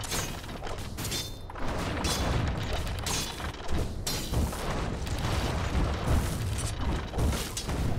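Video game spells crackle and whoosh as characters fight.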